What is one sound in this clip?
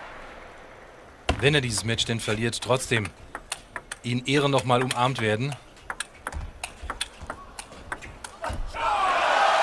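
A table tennis ball is struck back and forth with bats and bounces on the table.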